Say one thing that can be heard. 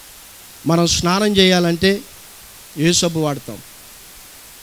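A young man speaks with emphasis into a microphone.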